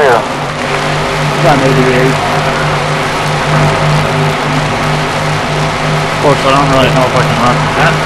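Other race cars' engines whine past nearby.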